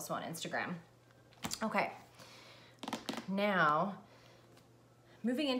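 A young woman speaks calmly and close by, in short phrases.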